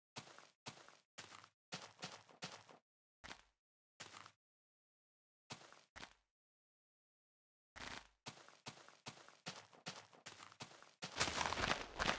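Footsteps crunch on grass and dirt in short bursts.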